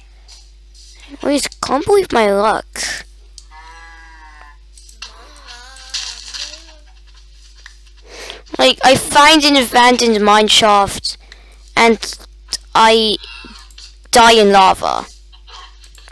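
A young boy talks close to a microphone.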